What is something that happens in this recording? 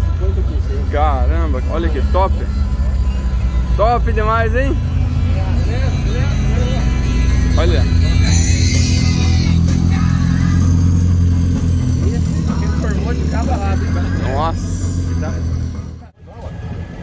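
An old jeep engine rumbles and idles nearby.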